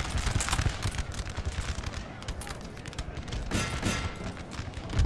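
Musket fire crackles and cannons rumble in a distant battle.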